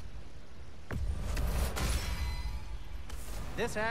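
A menu chimes and whooshes as an upgrade completes.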